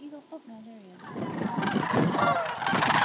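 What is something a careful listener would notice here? A large flock of geese honks and calls loudly overhead.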